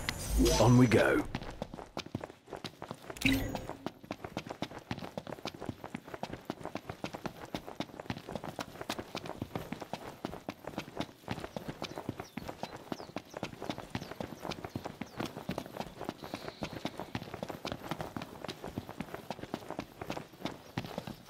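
Footsteps run quickly over dry grass and dirt.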